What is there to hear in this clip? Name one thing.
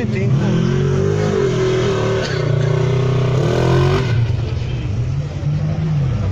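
An off-road vehicle's engine revs loudly and roars, rising and falling in pitch.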